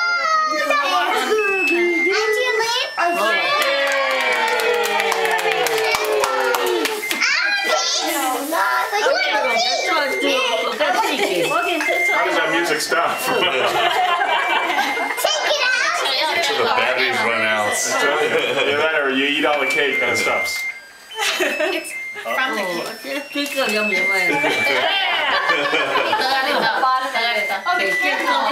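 A group of adults sings together loudly close by.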